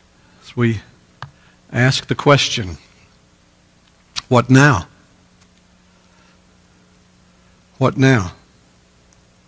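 A middle-aged man speaks slowly and deliberately into a microphone, with long pauses.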